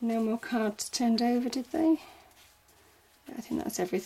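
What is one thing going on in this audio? A deck of cards is shuffled and riffled.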